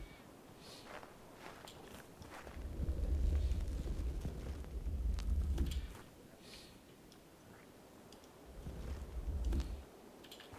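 Leaves crunch and snap as blocks are broken.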